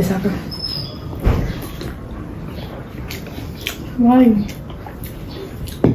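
A young woman sips a drink loudly.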